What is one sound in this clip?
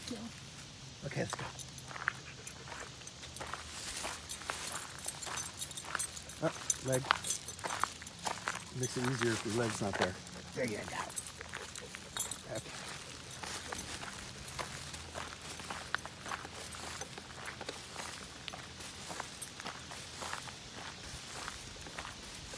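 Footsteps crunch on a gravel path.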